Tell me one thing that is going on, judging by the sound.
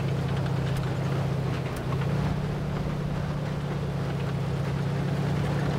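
Tank tracks clatter and squeak over rough ground.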